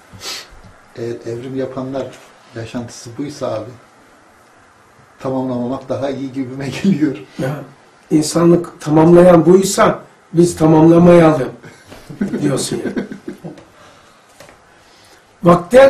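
An elderly man speaks calmly and thoughtfully into a nearby microphone.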